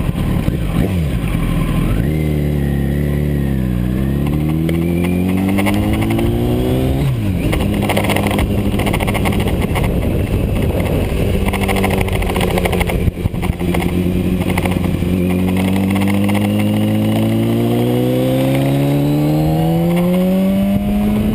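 A motorcycle engine roars, revving up and shifting through the gears as it speeds up.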